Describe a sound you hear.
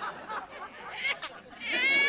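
A baby cries loudly.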